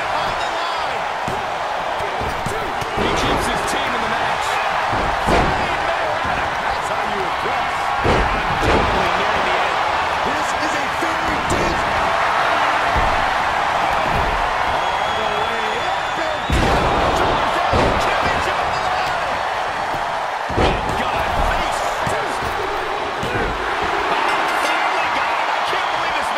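A large crowd cheers loudly throughout.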